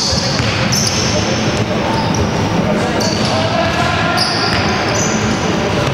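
Sneakers squeak sharply on a wooden gym floor in a large echoing hall.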